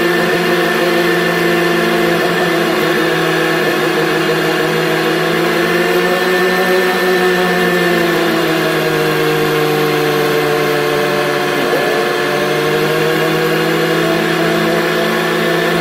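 A diesel backhoe loader engine drones as the machine drives down a road.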